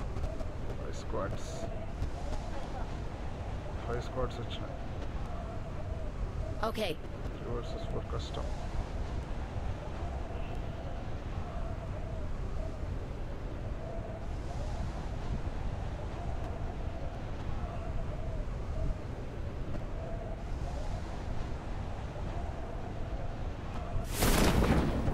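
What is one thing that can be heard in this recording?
Wind rushes steadily past a falling skydiver.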